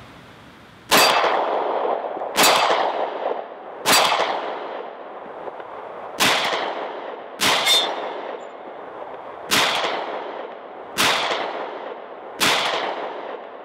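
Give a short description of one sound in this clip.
A pistol fires a series of loud shots that echo across open hills.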